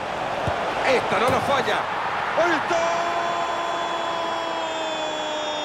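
A stadium crowd bursts into loud cheers.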